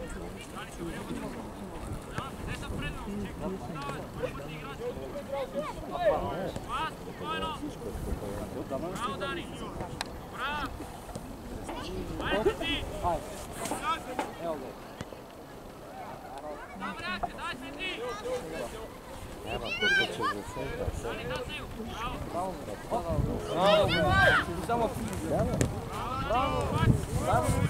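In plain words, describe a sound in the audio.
Children shout and call out across an open outdoor pitch.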